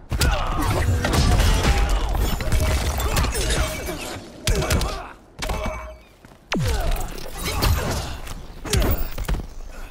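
Fiery blasts whoosh and crackle.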